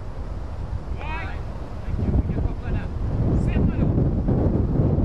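Men call out across an open field in the distance.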